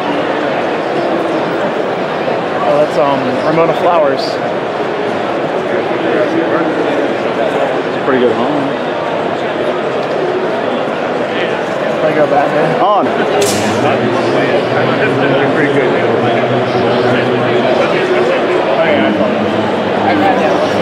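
A large crowd chatters loudly in an echoing hall.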